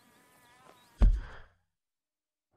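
A heavy sack thuds onto the ground.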